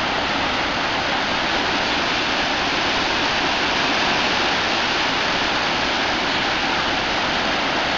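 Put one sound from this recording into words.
Floodwater rushes and roars steadily through a dam's open gates.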